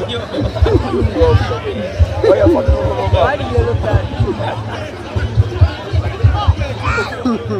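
A crowd of spectators chatters and shouts at a distance outdoors.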